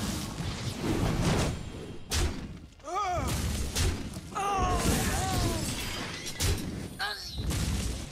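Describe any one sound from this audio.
Short magical chimes and whooshes sound.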